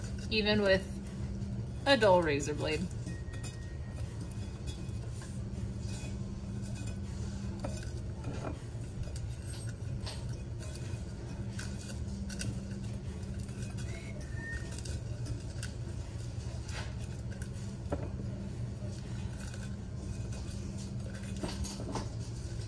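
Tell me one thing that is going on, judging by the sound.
Scissors snip softly against a metal cup.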